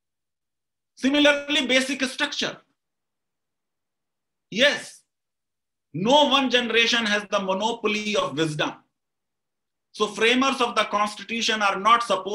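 A middle-aged man speaks calmly over an online call, in bursts with pauses.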